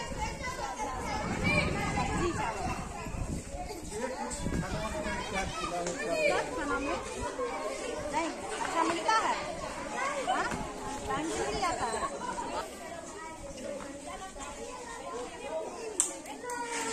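Children chatter and call out outdoors.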